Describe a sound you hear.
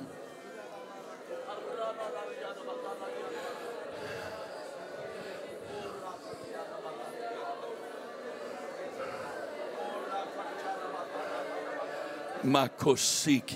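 Many people murmur and pray aloud together in a large room.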